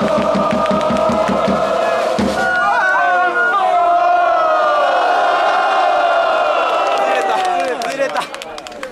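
A large outdoor crowd sings and chants loudly together.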